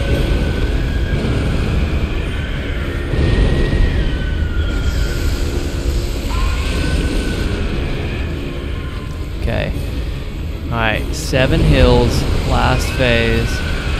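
Flames burst with deep booming blasts.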